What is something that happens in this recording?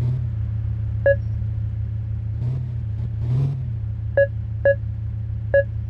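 A parking sensor beeps in short tones.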